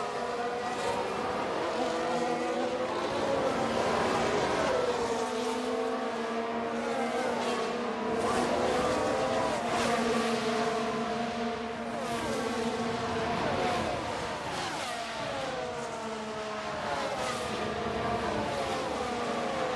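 Racing car engines whine at high pitch, rising and falling as they shift gears.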